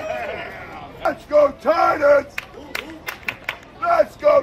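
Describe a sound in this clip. A man nearby shouts loudly.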